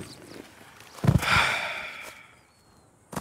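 A body thuds onto the ground.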